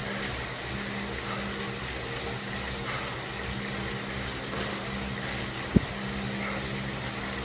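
An indoor bike trainer whirs steadily as a man pedals.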